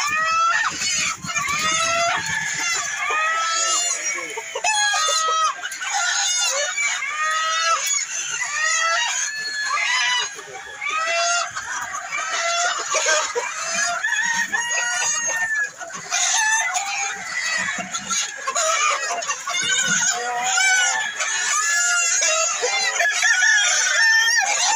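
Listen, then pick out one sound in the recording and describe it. Many chickens cluck and squawk close by.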